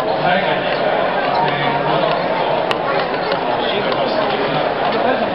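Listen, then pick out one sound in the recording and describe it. A large stadium crowd cheers and chatters loudly in a big echoing space.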